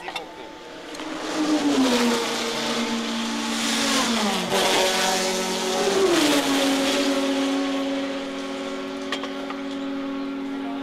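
Race car engines roar and rev loudly.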